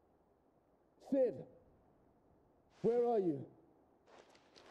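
A man calls out loudly in distress.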